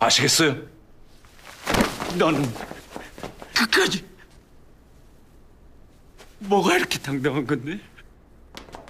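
A young man speaks with a strained, menacing voice.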